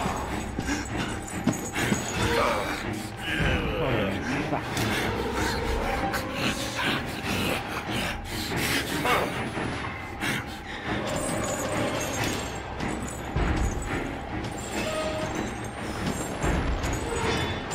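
Heavy footsteps thud on a hard floor close by.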